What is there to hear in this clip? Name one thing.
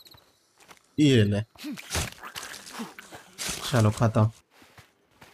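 Heavy punches thud against a body.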